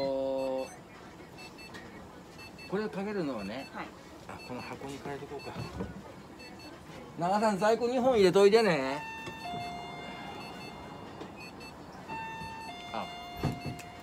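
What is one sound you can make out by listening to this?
An electronic thermometer beeps.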